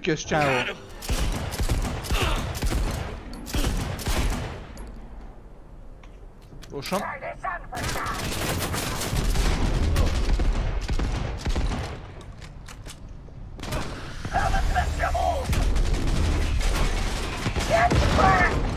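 A gun fires in rapid bursts, close by.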